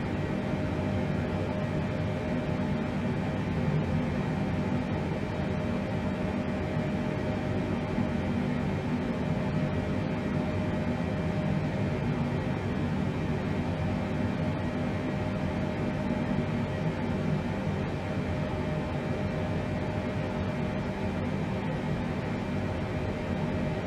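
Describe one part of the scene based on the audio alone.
Aircraft engines hum in a low, steady drone.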